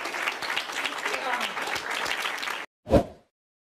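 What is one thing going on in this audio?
A crowd of young people claps.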